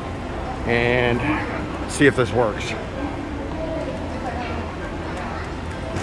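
A luggage trolley rolls over a hard floor.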